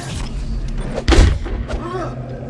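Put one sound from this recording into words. A heavy metal object lands with a loud thud.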